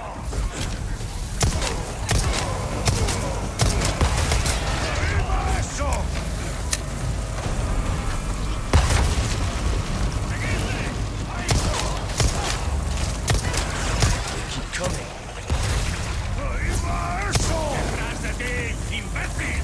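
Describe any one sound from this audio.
A man shouts angrily.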